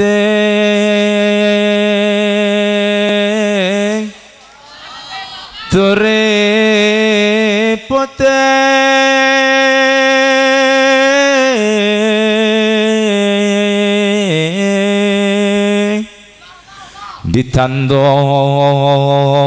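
A young man sings a long, wavering melody loudly through a microphone, pausing briefly between phrases.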